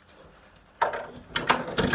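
A coin clinks into a slot.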